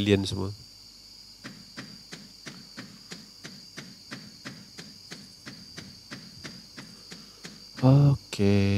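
Footsteps tap quickly and evenly on a path.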